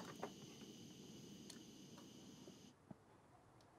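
A small gas torch flame hisses softly.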